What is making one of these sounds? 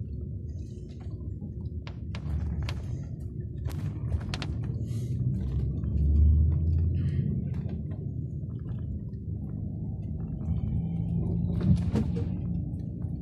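A bus engine rumbles low and steady from inside while driving.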